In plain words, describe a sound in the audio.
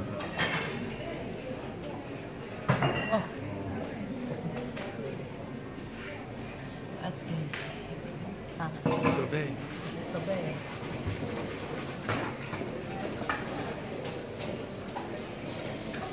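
Dishes and utensils clink and clatter.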